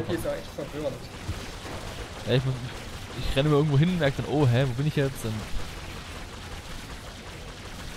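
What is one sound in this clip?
Magic blasts crackle and zap in a fight.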